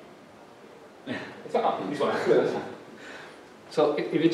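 A man speaks into a microphone in a room with a slight echo.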